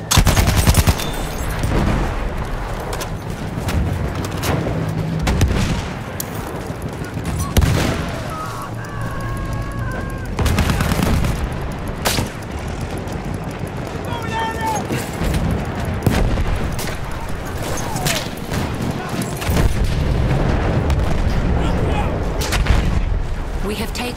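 Rifle shots crack again and again.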